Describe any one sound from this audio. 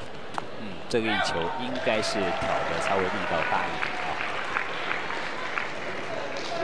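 A crowd applauds and cheers after the rally.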